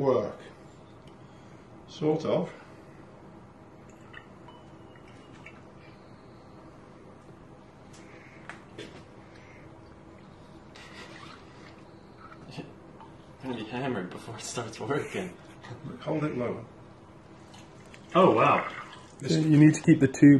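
Wine trickles and splashes through a tube into a glass decanter.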